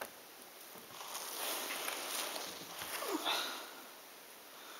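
Loose puzzle pieces rustle and clatter as a hand sifts through them.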